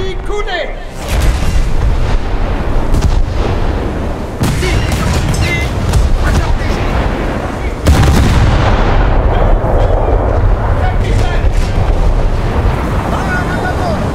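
Waves rush along a ship's hull.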